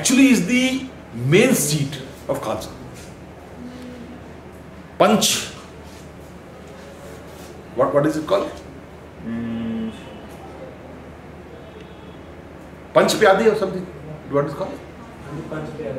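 A man speaks calmly in short bursts with pauses, close by.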